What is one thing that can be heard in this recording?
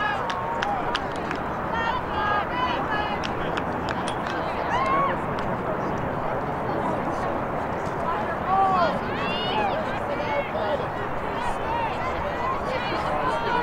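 Young women shout to each other across an open field.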